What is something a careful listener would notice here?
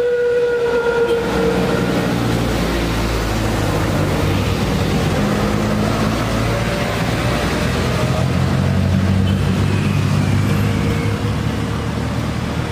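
Motor traffic rumbles past steadily nearby.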